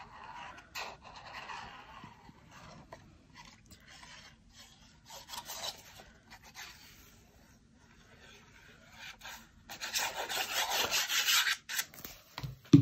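Scissors snip through thin card.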